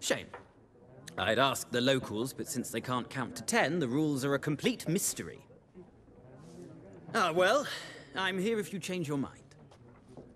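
A middle-aged man speaks in a friendly, chatty way.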